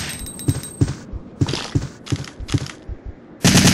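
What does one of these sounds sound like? Heavy footsteps thud slowly on a wooden floor.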